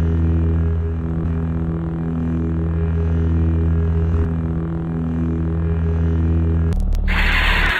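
A lightsaber hums steadily with a low, throbbing buzz.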